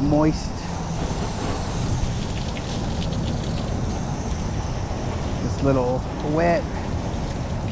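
Water sprays from a hose nozzle against a pickup truck's body.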